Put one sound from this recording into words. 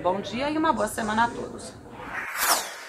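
A woman speaks clearly into a microphone, close by.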